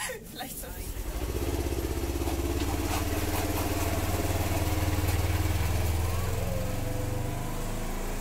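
A utility vehicle's engine rumbles steadily as it drives.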